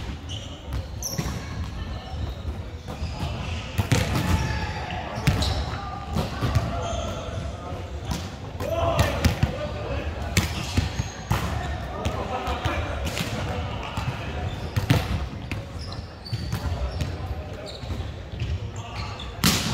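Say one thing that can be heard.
Young men and women call out and talk across the court, echoing in a large hall.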